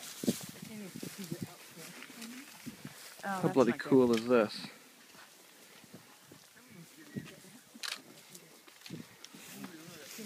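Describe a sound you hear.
A man's footsteps rustle through dry grass and brush.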